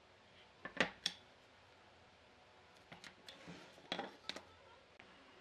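Wooden strips knock against a wooden board.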